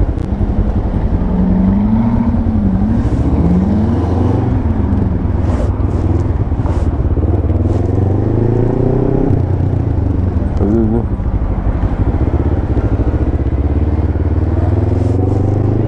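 A motorcycle engine rumbles and revs up and down close by.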